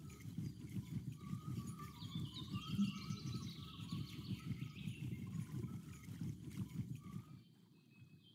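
A fishing reel whirs steadily as line is wound in.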